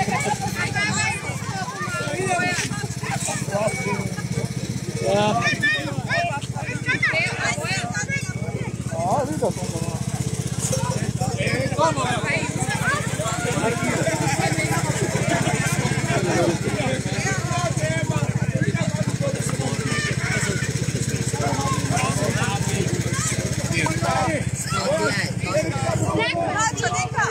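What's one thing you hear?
A crowd of men and women chatter and talk loudly nearby.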